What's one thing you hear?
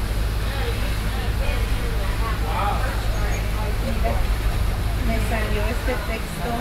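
Wind buffets outdoors with a low steady rumble.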